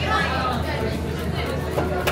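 Cheese is grated onto a plate.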